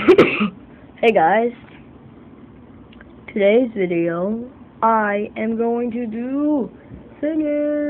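A young boy speaks close up in a high, sing-song voice.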